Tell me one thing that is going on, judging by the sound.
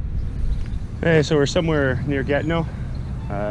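A man speaks calmly, close to the microphone, outdoors.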